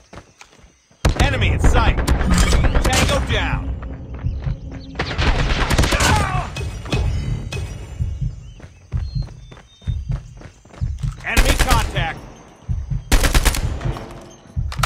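Rapid gunfire bursts loudly from a rifle.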